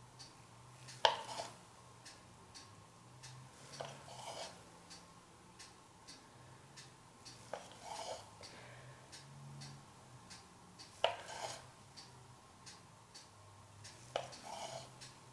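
A wooden stick taps against the rim of a paint cup.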